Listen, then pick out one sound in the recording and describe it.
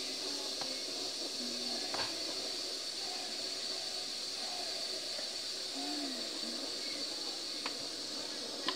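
Buttons on an electric cooker click softly.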